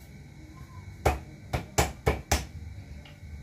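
Sharp knocks sound on a counter.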